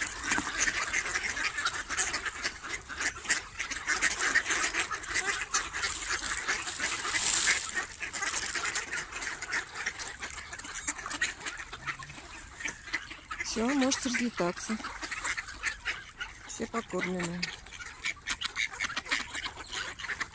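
A large flock of ducks quacks loudly and constantly close by.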